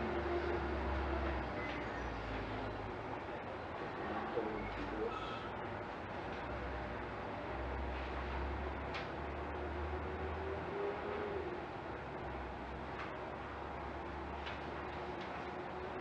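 A man speaks calmly at a distance.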